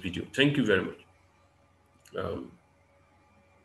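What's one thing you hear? A man speaks briefly and calmly through a microphone.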